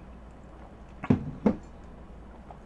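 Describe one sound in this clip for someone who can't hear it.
A young woman drinks with loud gulps close to a microphone.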